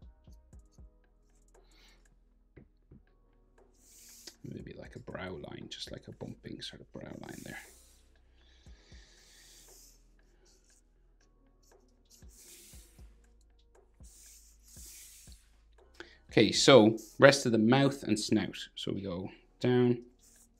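A marker squeaks and scratches across paper in short strokes.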